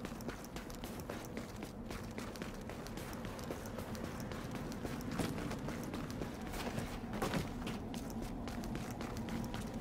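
Boots crunch quickly on snow.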